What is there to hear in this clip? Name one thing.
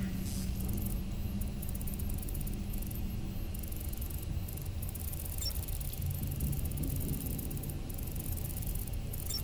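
An electronic device chirps in rapid, fluttering bursts.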